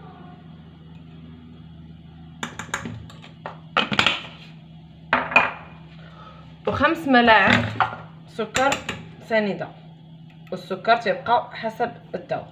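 A metal spoon scrapes and clinks against a pot.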